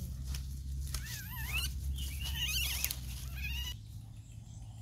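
Leaves rustle as a person walks through undergrowth.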